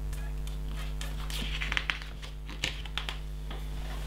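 A page of paper rustles as it turns.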